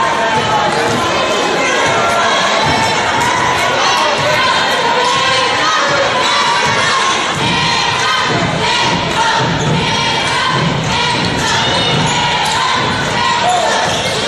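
A crowd in the stands cheers and chatters loudly in a large echoing gym.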